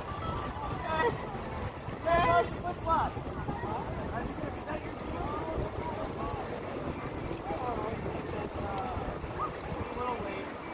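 River water laps and splashes gently.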